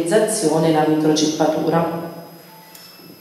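A woman speaks calmly and clearly through a microphone.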